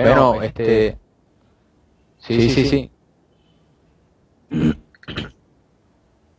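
A young man speaks in short bursts over an online call.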